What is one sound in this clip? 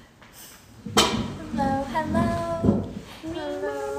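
Young women talk and laugh with animation, heard through an online call.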